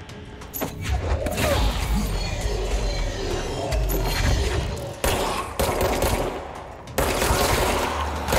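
Debris and glass crash and scatter.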